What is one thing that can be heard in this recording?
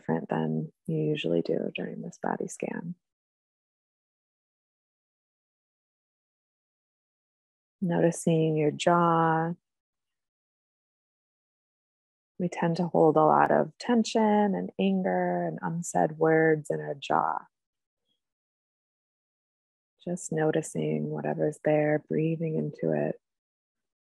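A young woman speaks calmly over an online call, with pauses between phrases.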